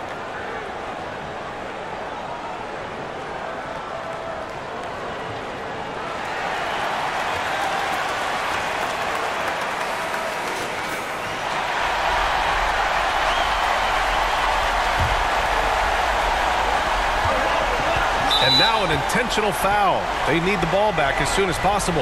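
A large crowd cheers and roars in a big arena, growing louder.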